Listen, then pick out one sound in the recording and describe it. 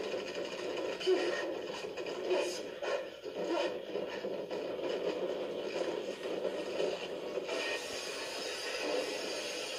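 Video game music plays through a television speaker.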